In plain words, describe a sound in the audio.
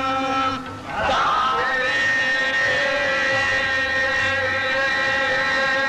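A man sings long, drawn-out notes into a microphone through a loudspeaker.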